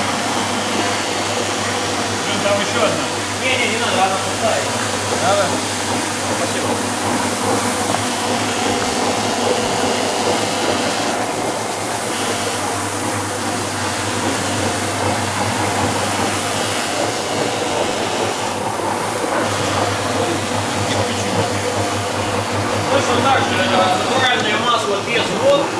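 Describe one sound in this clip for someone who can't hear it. A floor polishing machine hums steadily.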